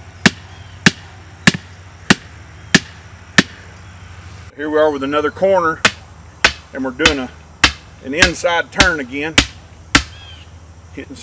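A hammer strikes a metal post with sharp ringing blows.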